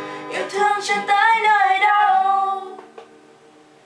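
Two young women sing together close by.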